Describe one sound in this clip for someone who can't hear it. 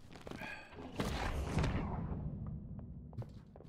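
A magic spell bursts with a loud rumbling whoosh.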